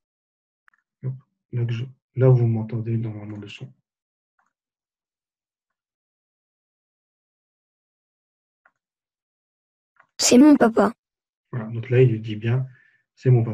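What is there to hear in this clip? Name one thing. A man speaks calmly into a nearby microphone, in short bursts with pauses.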